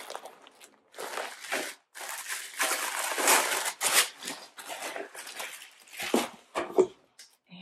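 Paper and fabric rustle as they are handled.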